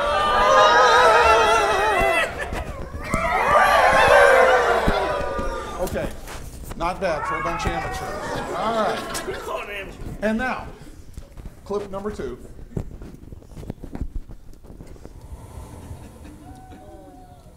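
An older man speaks with animation to a group in a room, heard through a microphone.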